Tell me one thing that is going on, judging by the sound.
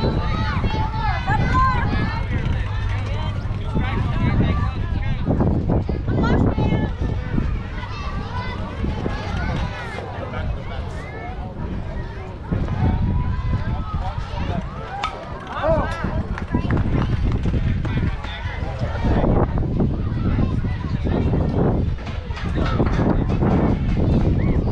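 Children and adults chatter and call out nearby outdoors.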